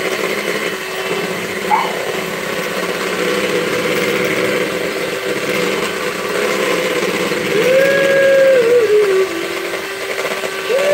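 Mixer beaters rattle against a bowl.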